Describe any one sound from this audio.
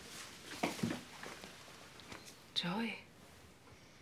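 A young woman speaks a few short words nearby.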